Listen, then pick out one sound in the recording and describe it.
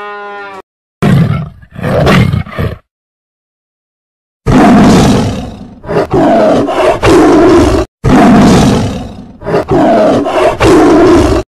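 A tiger roars and growls loudly.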